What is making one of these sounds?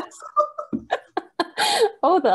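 A woman laughs loudly over an online call.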